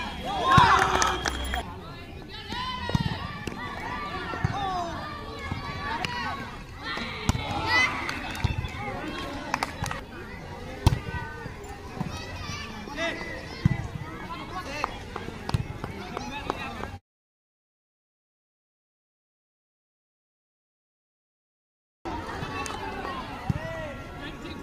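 A volleyball is struck with hands with sharp thuds.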